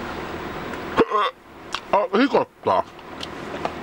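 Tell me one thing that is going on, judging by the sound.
A middle-aged man speaks loudly and briefly close to the microphone.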